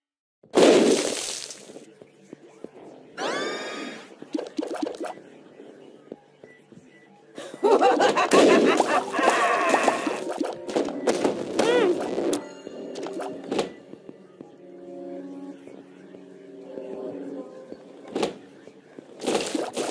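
Cartoonish game sound effects splat and pop in quick bursts.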